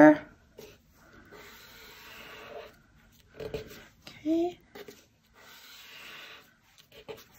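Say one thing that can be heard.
Paper rustles and scrapes softly as hands fold and press it.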